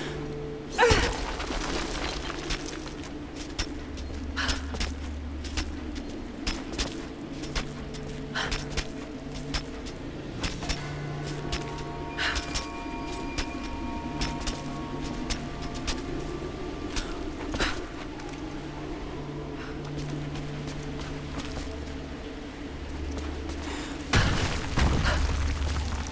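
A climber's hands and boots scrape and knock against rock.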